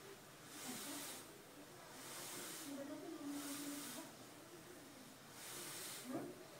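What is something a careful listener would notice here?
Air hisses rhythmically through a breathing mask with each breath.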